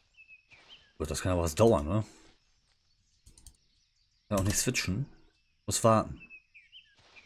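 A man speaks in short bursts into a close microphone.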